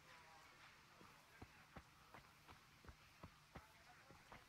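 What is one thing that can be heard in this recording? Footsteps crunch steadily on dirt.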